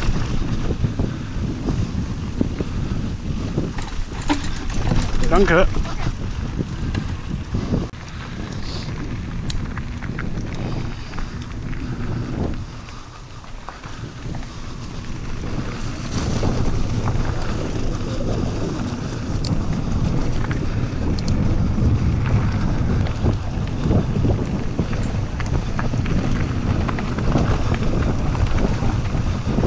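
Wind buffets loudly across the microphone.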